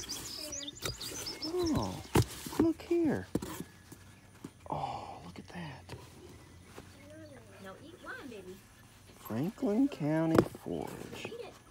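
Hands rummage through soft fabric in a cardboard box.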